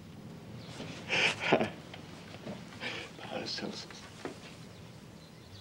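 A middle-aged man answers warmly close by.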